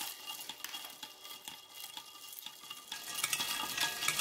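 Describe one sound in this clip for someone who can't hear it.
A spoon stirs ice cubes in a pitcher, clinking against the glass.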